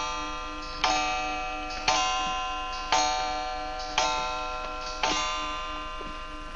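A clock chimes several times in a ringing tone.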